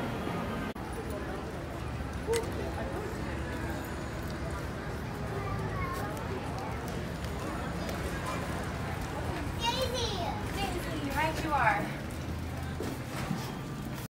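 Stroller wheels rumble over paving stones.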